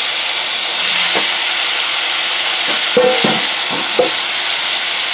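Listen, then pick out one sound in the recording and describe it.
Chunks of potato tumble into a sizzling pan.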